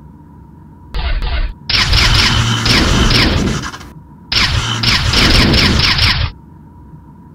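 A laser beam blasts with a loud roaring burst.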